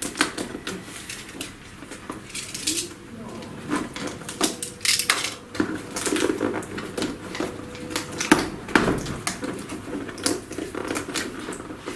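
Cardboard rustles and scrapes as a box is shifted.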